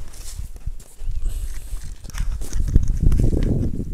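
Dry grass rustles and crunches underfoot.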